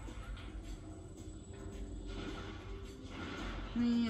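A video game's arm cannon fires energy blasts through a TV speaker.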